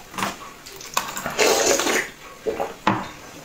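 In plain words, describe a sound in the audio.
A young woman slurps a drink close up.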